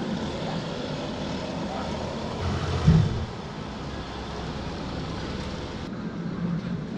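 A car drives slowly over wet ground.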